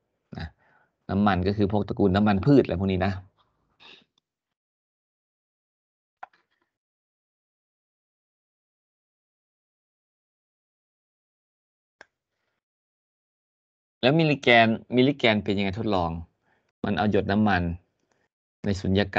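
An elderly man speaks calmly through an online call, with pauses.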